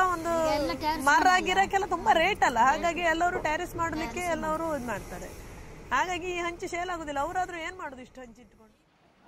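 A group of women sing together close by.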